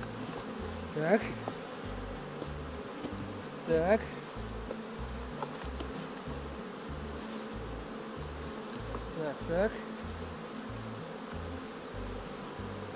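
Wooden hive boxes knock and scrape as they are lifted and stacked.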